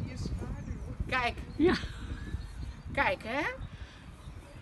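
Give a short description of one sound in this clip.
A woman squeals in a high, playful voice close by.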